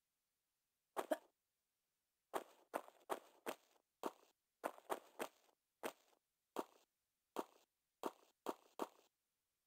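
Footsteps tap on a stone floor in an echoing space.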